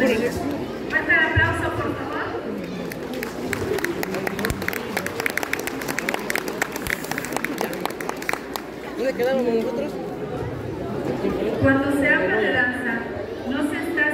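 A large crowd chatters in the distance outdoors.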